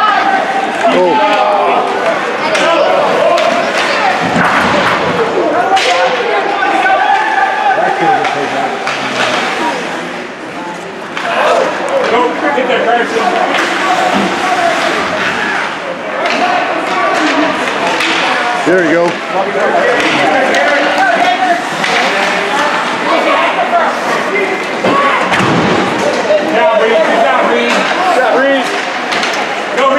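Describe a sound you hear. Ice skates scrape and swish across the ice.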